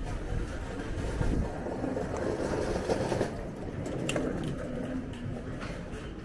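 A small truck's engine idles close by.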